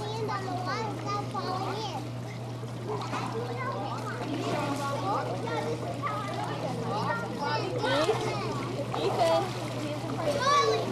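Water splashes as swimmers move in a pool.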